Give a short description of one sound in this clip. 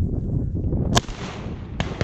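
A shotgun fires a single loud shot outdoors.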